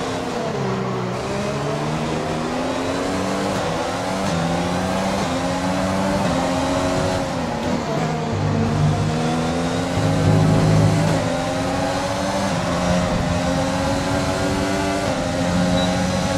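A racing car engine screams loudly, rising and falling in pitch as it shifts gears.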